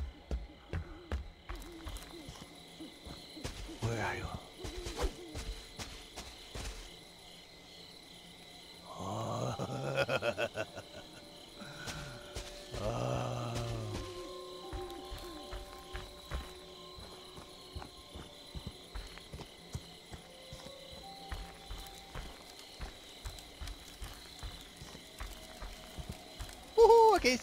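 Footsteps crunch steadily over dry leaves and gravel.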